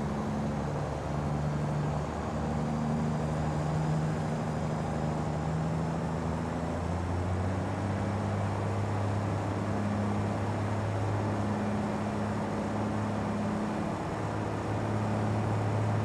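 A truck engine drones steadily, shifting pitch as it changes gear.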